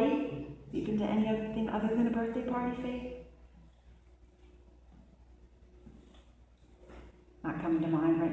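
A woman sings into a microphone, heard through loudspeakers in an echoing room.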